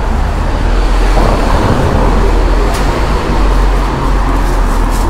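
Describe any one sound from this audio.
A car engine hums as a car drives slowly past close by.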